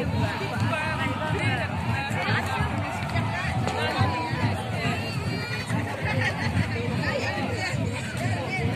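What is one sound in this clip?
A large crowd shouts and chatters outdoors.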